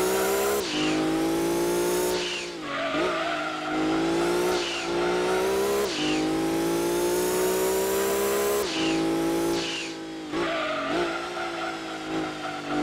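A racing car engine whines loudly, rising in pitch and dropping sharply with each gear change.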